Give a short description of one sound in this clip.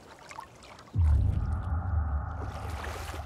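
A body plunges into water with a deep, heavy splash.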